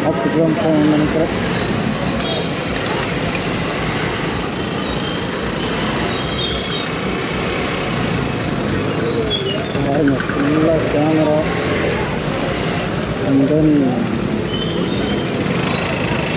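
Scooters and motorbikes pass close by.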